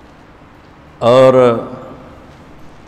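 An elderly man speaks into a microphone in a short, loud burst.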